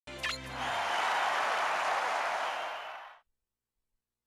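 A video game menu sounds a chime followed by a loud whooshing rush that fades out.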